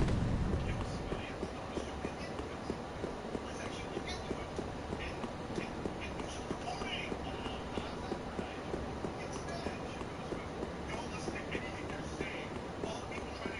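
Armoured footsteps clink steadily on stone.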